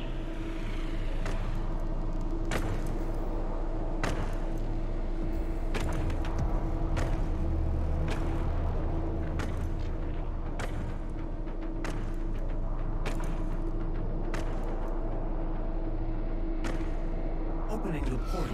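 Heavy armoured boots clank on a metal floor in slow, thudding steps.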